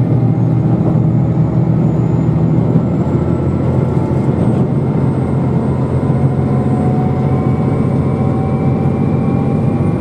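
A train's motor hums and whines, rising slowly in pitch.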